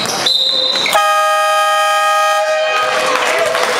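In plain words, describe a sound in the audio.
A game buzzer sounds in an echoing indoor hall.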